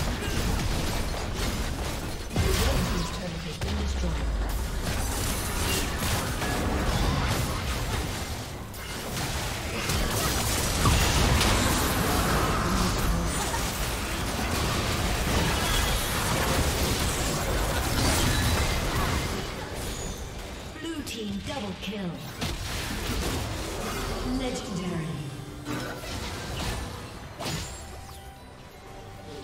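Game spell effects and attacks crackle and boom in a battle.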